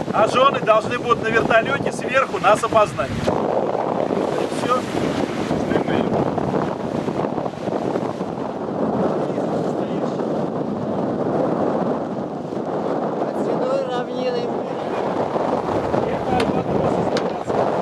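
Wind rushes steadily across open water.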